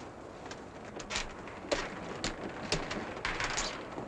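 Wooden knocks and thuds sound on a ship's deck.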